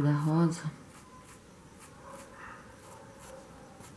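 A brush dabs paint softly onto fabric.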